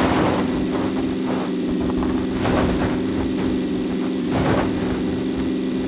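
A car engine hums steadily as it drives.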